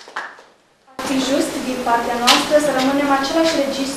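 A young woman speaks calmly into a microphone to an audience.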